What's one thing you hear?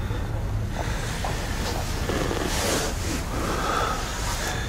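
A man speaks quietly and urgently close by.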